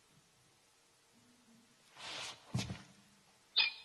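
Footsteps thud on a wooden floor in a large echoing room.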